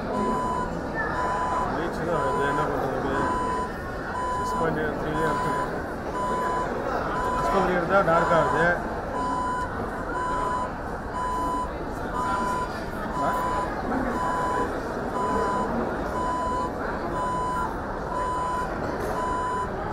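Men and women chat with each other nearby in a busy room.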